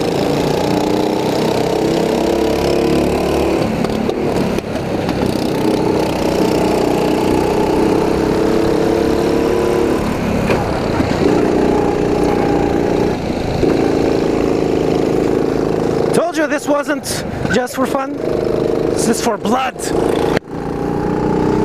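A kart engine buzzes loudly close by, rising and falling in pitch as it speeds up and slows.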